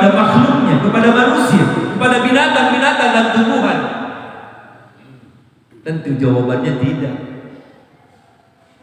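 A middle-aged man preaches with animation into a microphone, his voice echoing in a large hall.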